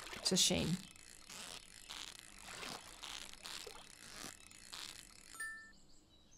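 A fishing reel whirs in quick repeated bursts.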